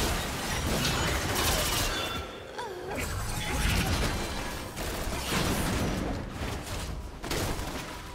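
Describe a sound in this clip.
Magic spells whoosh and crackle in a fast fight.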